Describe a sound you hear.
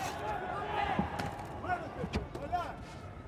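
Boxing gloves thump against a body.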